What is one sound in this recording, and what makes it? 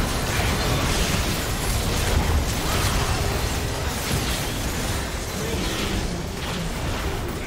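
Video game spell blasts and weapon hits clash rapidly in a busy battle.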